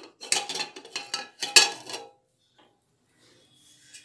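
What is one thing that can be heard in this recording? A metal lid clanks as it is lifted off a pot.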